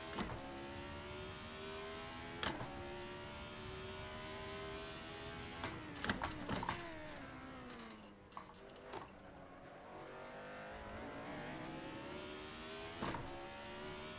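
A gearbox clicks sharply with each gear change.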